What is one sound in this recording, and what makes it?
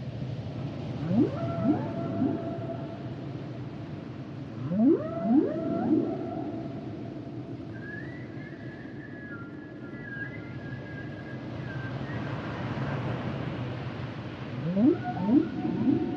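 Whales call underwater with low, rising moans.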